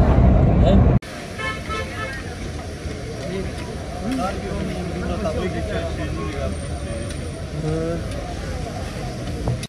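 A crowd of people talk in the background outdoors.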